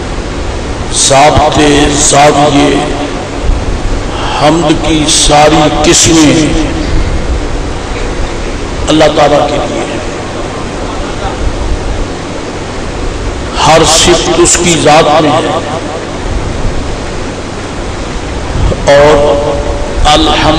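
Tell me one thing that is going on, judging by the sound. An elderly man speaks slowly in bursts through a microphone and loudspeaker.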